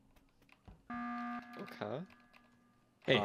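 A video game alarm blares loudly.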